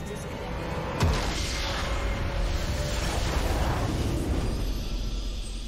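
A deep magical explosion booms and rumbles.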